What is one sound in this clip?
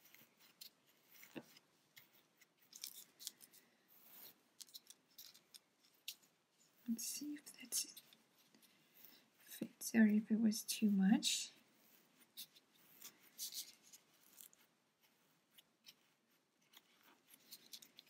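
A hook pokes and scrapes softly against yarn.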